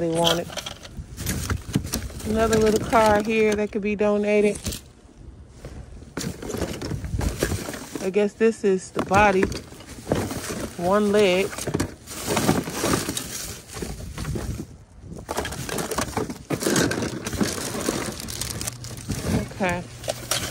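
Plastic wrappers and cardboard rustle and crinkle as hands rummage through a pile of items.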